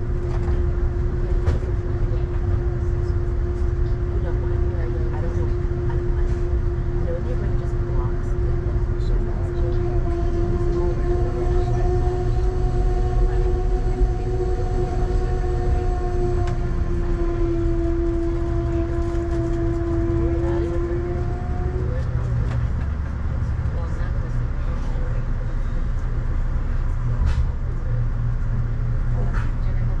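Rain taps on a car window.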